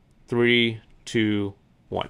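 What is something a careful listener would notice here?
A marker squeaks on paper.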